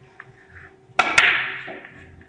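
A cue strikes a billiard ball with a sharp knock.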